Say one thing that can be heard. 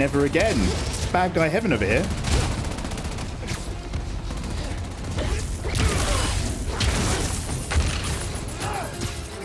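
Video game blasts and impacts sound out.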